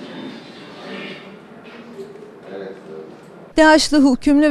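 Several men talk quietly in a room.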